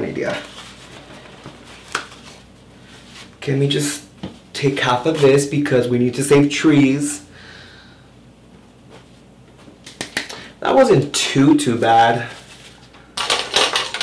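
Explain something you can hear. Paper towels rustle and crinkle in a man's hands.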